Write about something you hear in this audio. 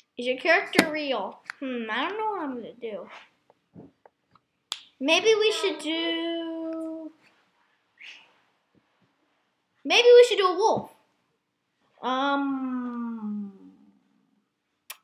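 A young person talks animatedly and close into a microphone, in bursts with pauses.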